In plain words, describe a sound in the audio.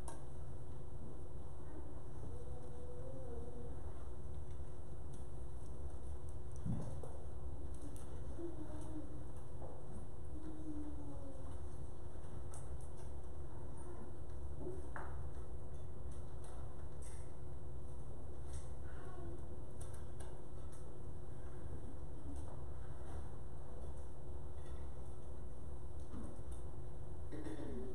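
Men chat quietly in a large, echoing hall.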